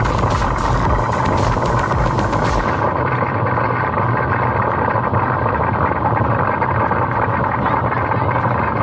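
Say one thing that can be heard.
A sled rumbles steadily along a wet track.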